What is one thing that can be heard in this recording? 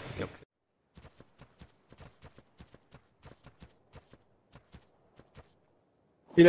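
Footsteps tread steadily on grass.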